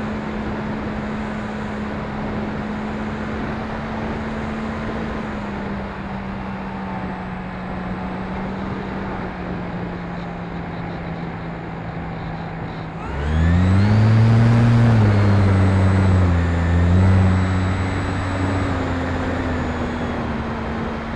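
Wind rushes past a small model plane in flight.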